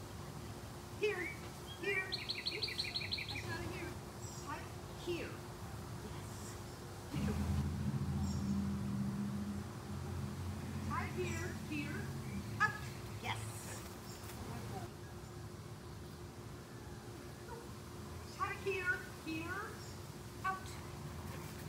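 A woman outdoors gives commands to a dog from a distance.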